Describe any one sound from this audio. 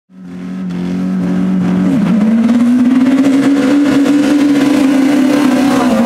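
Several race car engines rev loudly and roar as the cars launch and accelerate away.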